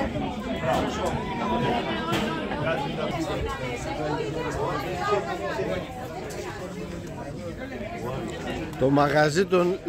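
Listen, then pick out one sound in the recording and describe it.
Many people chatter at once around the listener.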